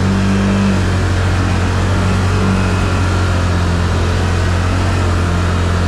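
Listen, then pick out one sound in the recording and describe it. Water splashes and sprays under the tyres of a vehicle.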